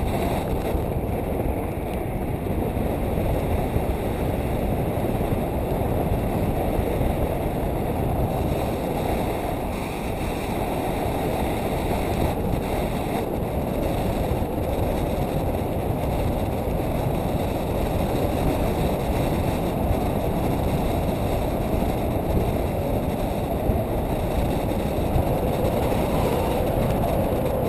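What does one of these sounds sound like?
A young woman speaks close by, partly drowned by wind.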